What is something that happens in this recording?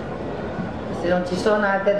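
An older woman speaks with animation into a microphone.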